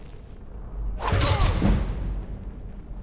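A blade strikes a body with a heavy, sudden thrust.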